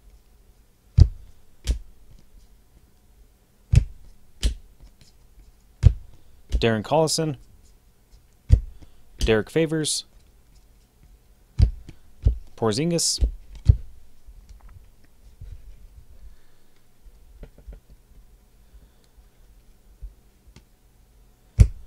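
Cards and plastic card cases click and tap as hands handle them.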